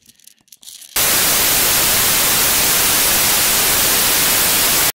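Loud static hiss roars steadily.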